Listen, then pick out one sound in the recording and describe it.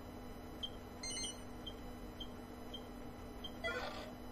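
Short electronic beeps chime in quick succession.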